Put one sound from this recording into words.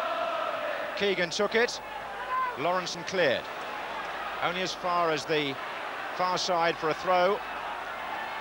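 A large stadium crowd chants and sings loudly in bursts.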